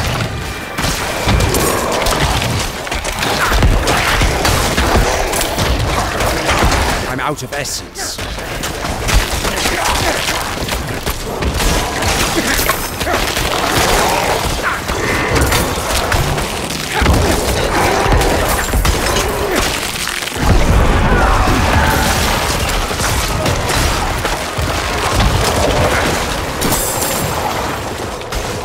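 Spells blast and crackle in a noisy fantasy battle.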